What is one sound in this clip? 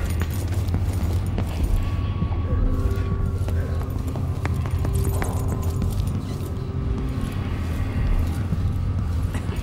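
Footsteps tread across a hard floor.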